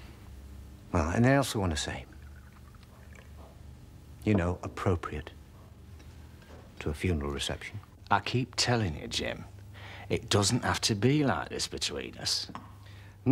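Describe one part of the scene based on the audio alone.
A middle-aged man speaks calmly and smoothly, close by.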